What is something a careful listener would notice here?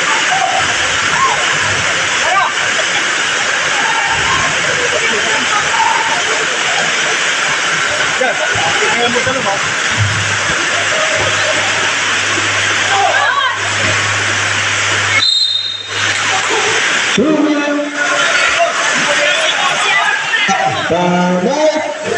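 A crowd of spectators chatters and cheers loudly in an echoing open hall.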